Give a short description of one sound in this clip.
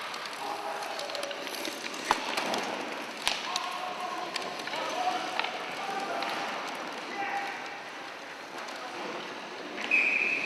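Sled blades scrape and hiss across the ice.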